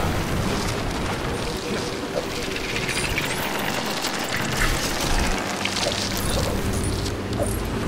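A magical crackling whoosh sounds.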